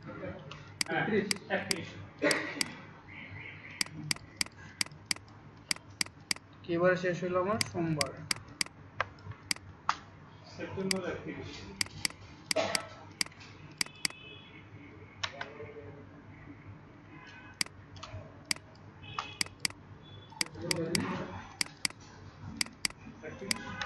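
A computer mouse clicks again and again, sharp and quick.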